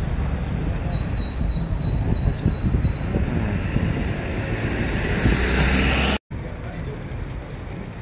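Traffic hums along a street.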